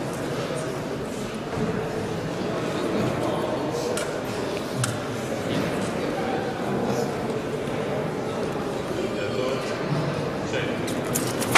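Fencers' shoes tap and shuffle on a wooden floor.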